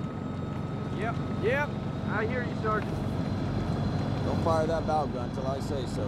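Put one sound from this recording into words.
A man speaks in a low, gruff voice.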